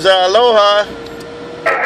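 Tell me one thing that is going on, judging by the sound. A warbling tone beeps briefly from a radio loudspeaker.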